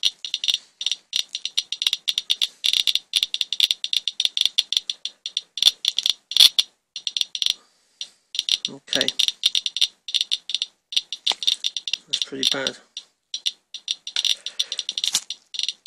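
A radiation counter clicks rapidly and irregularly.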